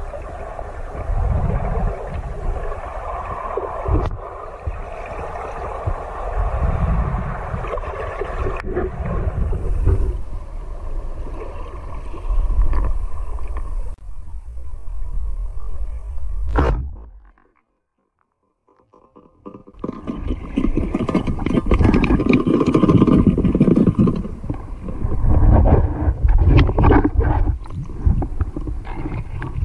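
Water rushes and gurgles in a low, muffled rumble underwater.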